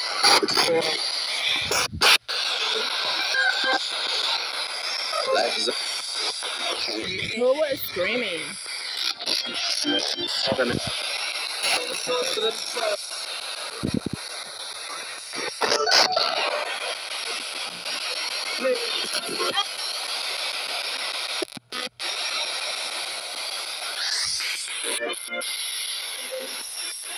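A handheld radio device crackles with choppy, rapidly switching static.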